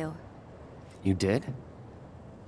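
A young man asks a short question in a low voice.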